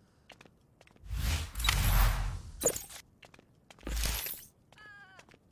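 A sharp whoosh sweeps past.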